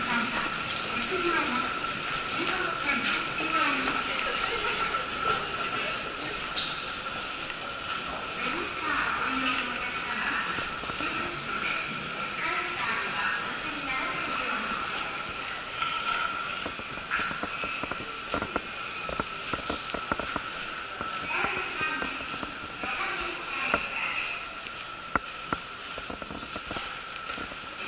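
Footsteps tap on a hard floor in an echoing corridor.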